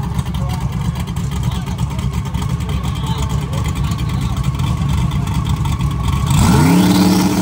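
A powerful car engine idles with a loud, lumpy rumble.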